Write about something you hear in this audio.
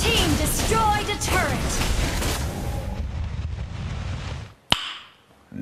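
Video game battle effects clash and whoosh loudly.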